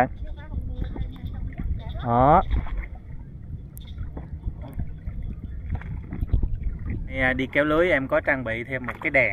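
Water laps and splashes against a small boat.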